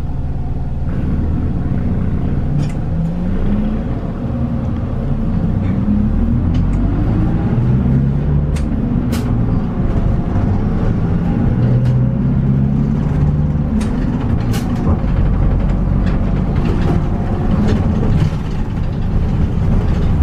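A diesel city bus pulls away and speeds up.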